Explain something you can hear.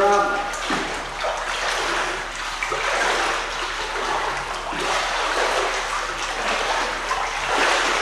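A child splashes while swimming through echoing water.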